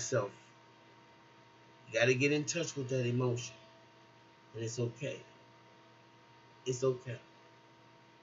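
A middle-aged woman speaks calmly in short bursts, close to a microphone.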